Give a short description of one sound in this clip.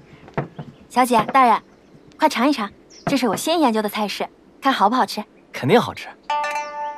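A young woman speaks clearly and with animation.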